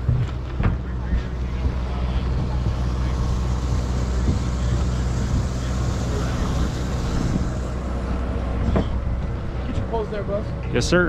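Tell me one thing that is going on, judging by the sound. A boat engine rumbles steadily nearby.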